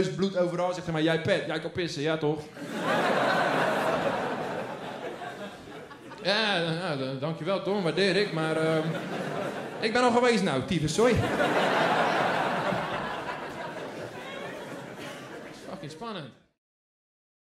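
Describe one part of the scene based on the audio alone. A young man talks with animation into a microphone in a large hall.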